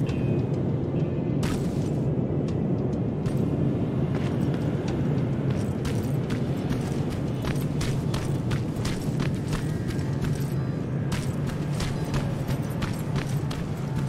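Footsteps crunch on gravel and rocks.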